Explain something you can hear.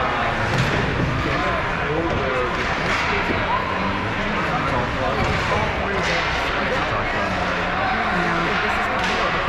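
Hockey sticks clack against the ice.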